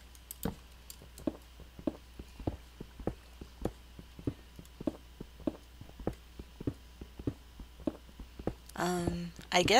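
A pickaxe chips at stone in quick, steady knocks.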